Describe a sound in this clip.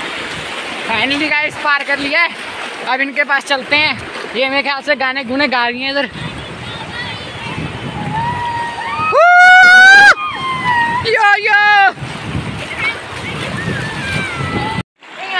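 Young girls shout and call out playfully in the water nearby.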